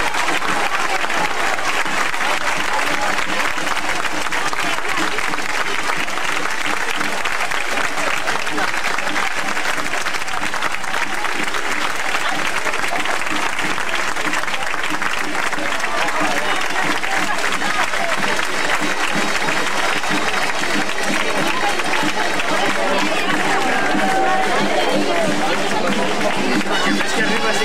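A large outdoor crowd of men and women murmurs and chatters throughout.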